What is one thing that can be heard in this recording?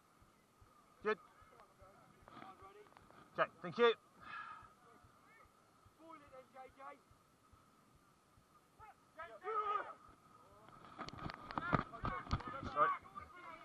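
Young men shout calls to each other outdoors.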